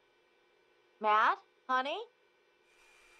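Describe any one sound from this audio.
A woman calls out loudly nearby.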